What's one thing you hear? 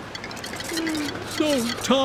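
Coins jingle as they scatter.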